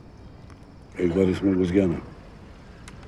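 A middle-aged man speaks in a low, serious voice close by.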